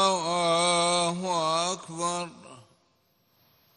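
A man chants in a long, drawn-out voice over loudspeakers, echoing across a wide open space.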